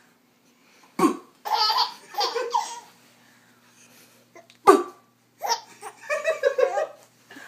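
A baby laughs and squeals close by.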